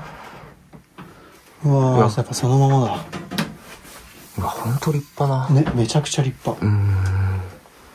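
Wooden sliding doors rattle and slide open.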